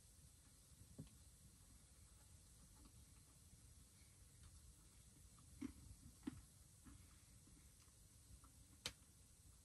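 A cup knocks softly on a wooden plate close by.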